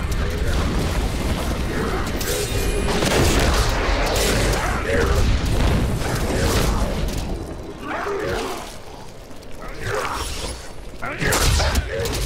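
Spells and blows clash and crackle in a fight with monsters.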